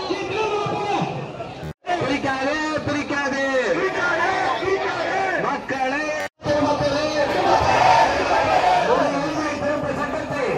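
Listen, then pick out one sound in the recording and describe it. A large crowd of men and women chants slogans loudly outdoors.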